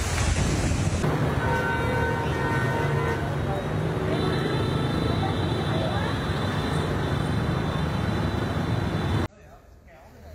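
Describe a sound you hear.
Heavy rain pours down on a street.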